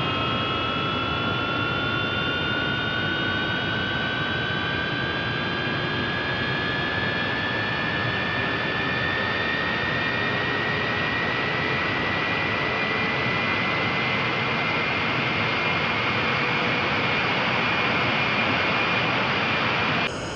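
A jet engine roars steadily with a deep rushing hum.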